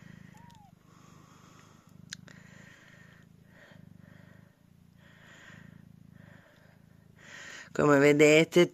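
A cat purrs softly and steadily.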